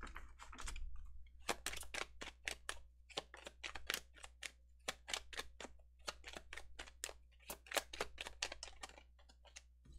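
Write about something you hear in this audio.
Playing cards riffle and flick as a deck is shuffled by hand.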